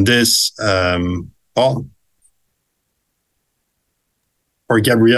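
A young man speaks calmly into a microphone, heard as if over an online call.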